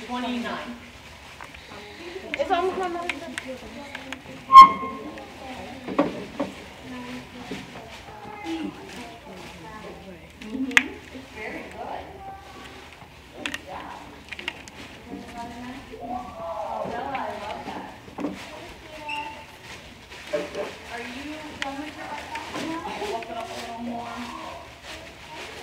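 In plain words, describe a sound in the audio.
String rustles as it is wound around a spool.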